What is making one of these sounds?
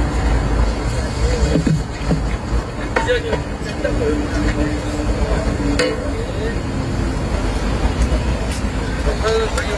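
An elderly man talks quietly near a microphone.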